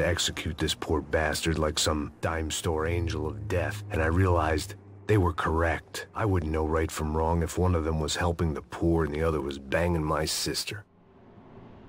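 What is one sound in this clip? A man speaks calmly and low, close to a microphone.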